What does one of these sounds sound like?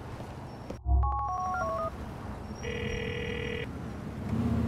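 A phone rings with a beeping tone.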